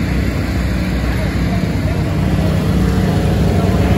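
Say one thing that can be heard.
An off-road vehicle's engine idles with a low rumble close by.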